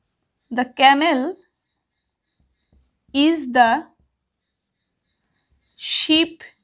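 A woman speaks clearly and calmly, close by, in short phrases.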